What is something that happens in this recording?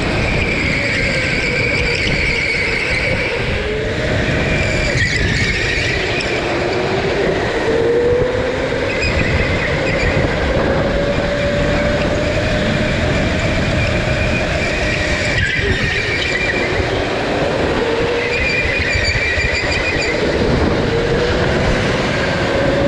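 A go-kart engine whines loudly up close, rising and falling in pitch.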